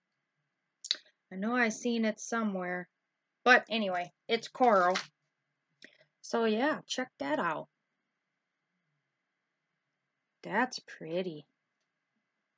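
A middle-aged woman talks calmly and close to a microphone, in short phrases with pauses.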